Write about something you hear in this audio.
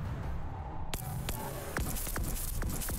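An electric charge crackles and zaps.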